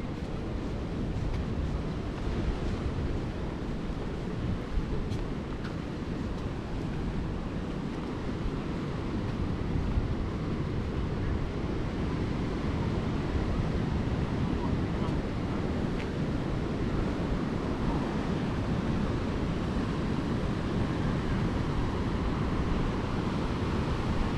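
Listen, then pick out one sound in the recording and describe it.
Wind blows hard and rumbles outdoors.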